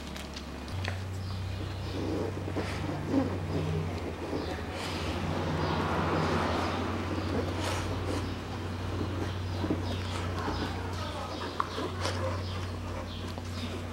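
Gloved fingers scrape and click against a plastic badge on a car bonnet.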